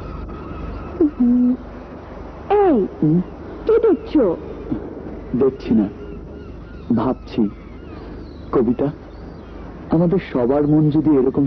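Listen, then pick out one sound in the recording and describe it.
A young woman sings a slow melody.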